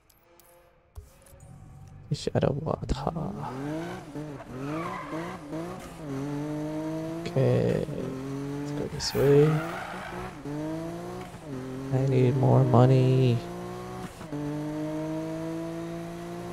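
A car engine revs and roars as it accelerates through the gears.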